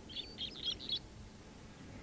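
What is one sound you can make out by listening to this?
A small bird chirps in short bursts.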